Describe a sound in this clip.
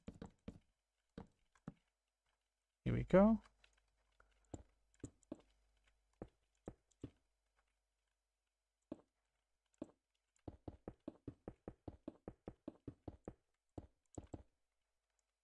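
Stone blocks thud down one after another in quick short knocks.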